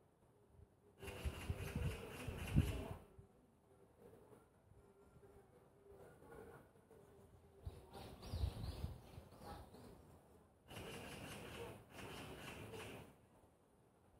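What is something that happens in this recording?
Wind rustles through the leaves of trees outdoors.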